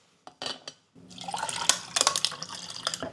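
Water pours into a cup.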